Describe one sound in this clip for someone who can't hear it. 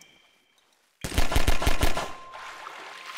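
A pistol fires several shots in quick succession, echoing between stone walls.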